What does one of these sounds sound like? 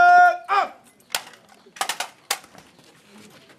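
Rifles clack as they are handled.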